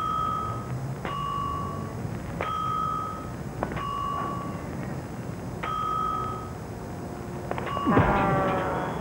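A crossing signal beeps in alternating high and low tones.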